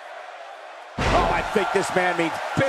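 A crowd cheers loudly as a wrestler is slammed.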